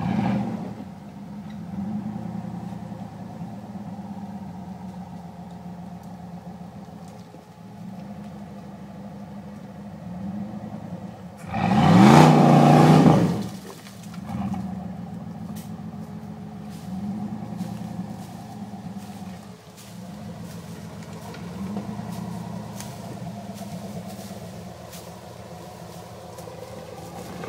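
An off-road vehicle's engine rumbles steadily nearby.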